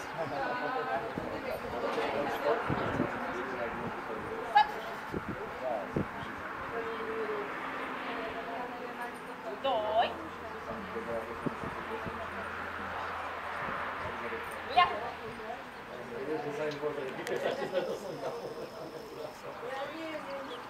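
A woman calls out short commands to a dog from a distance, outdoors.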